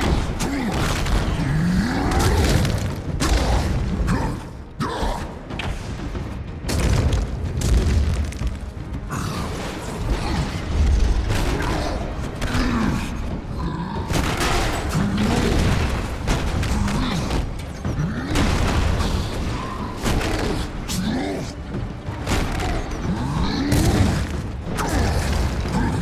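Debris clatters and shatters on the floor.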